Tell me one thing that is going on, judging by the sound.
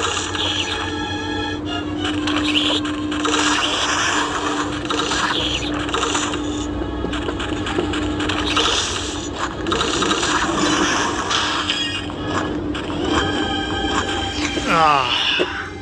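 Upbeat electronic game music plays throughout.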